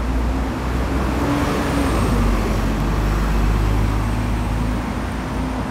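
A bus rumbles past close by.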